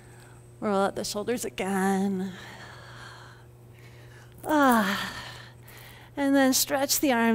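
An older woman speaks calmly and gently close to a microphone.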